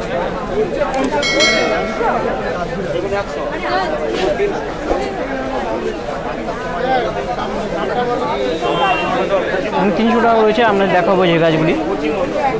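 Many men and women chatter nearby in a busy outdoor crowd.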